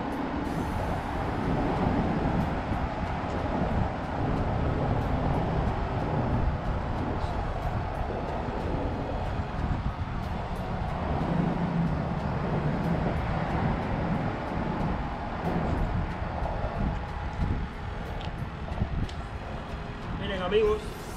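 Wind blows hard into the microphone outdoors.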